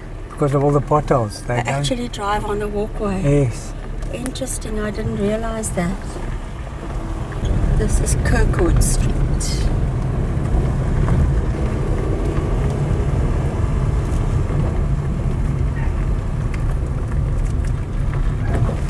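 Car tyres rumble over a bumpy dirt road, louder after the first few seconds.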